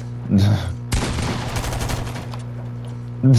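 A weapon fires with a loud crackling blast.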